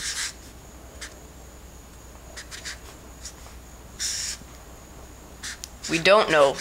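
A marker squeaks across paper in short strokes.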